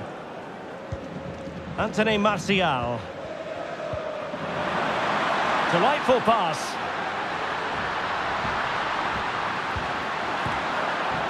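A large stadium crowd roars and swells louder.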